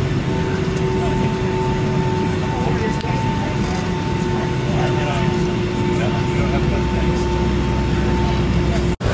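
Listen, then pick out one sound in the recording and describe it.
A jet engine hums steadily from inside an airliner cabin.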